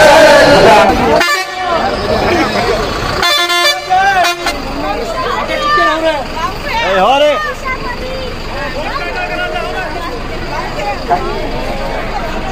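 A crowd of men and women call out and cheer outdoors.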